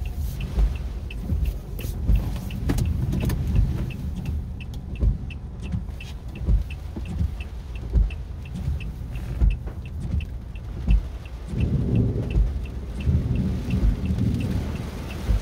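Windshield wipers sweep back and forth with a regular thump.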